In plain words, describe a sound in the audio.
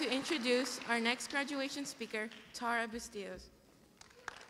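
A young woman speaks into a microphone over loudspeakers in a large echoing hall.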